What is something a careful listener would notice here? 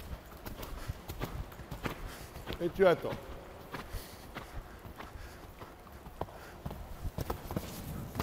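A horse's hooves thud on soft sand in a rhythm, in a large echoing hall.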